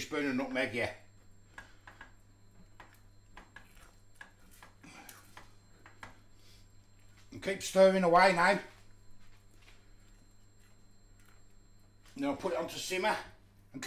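A spatula scrapes and stirs thick sauce in a metal saucepan.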